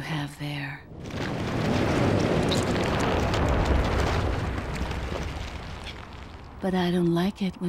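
A monster lets out a long, rumbling growl.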